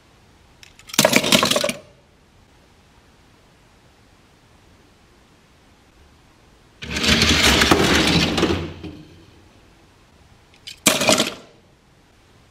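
Toy cars clatter as they are rummaged in a box.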